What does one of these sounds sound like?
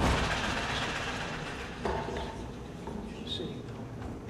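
A piano lid creaks and knocks as it is raised.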